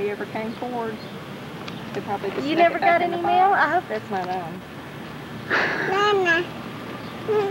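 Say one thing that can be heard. A woman talks close by in a cheerful voice.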